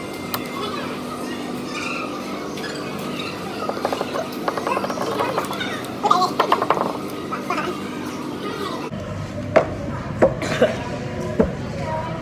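Young men slurp drinks from cups close by.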